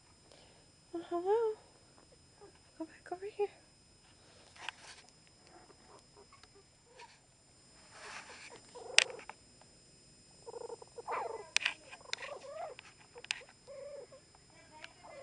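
Puppies growl and yip playfully up close.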